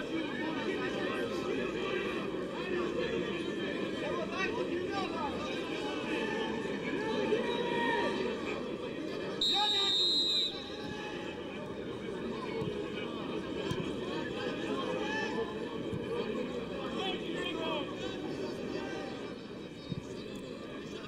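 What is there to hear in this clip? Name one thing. A large stadium crowd chants outdoors.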